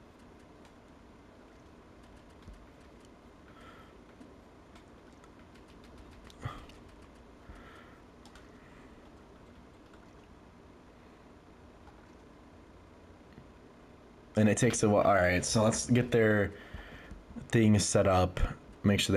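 Soft menu clicks tick as options change.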